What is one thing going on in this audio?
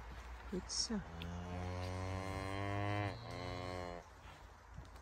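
A calf moos loudly nearby.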